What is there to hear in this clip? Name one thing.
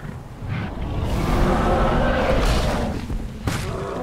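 A fiery strike whooshes and crashes into a dinosaur.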